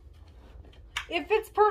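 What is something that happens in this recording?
A young woman speaks close to the microphone.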